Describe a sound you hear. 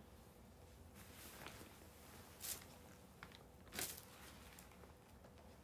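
Clothing rustles close to a microphone as a woman moves.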